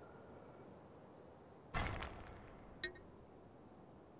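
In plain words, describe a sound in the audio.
A magic spell crackles and shimmers with a whoosh.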